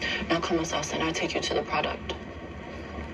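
A young woman speaks calmly and coldly, close by.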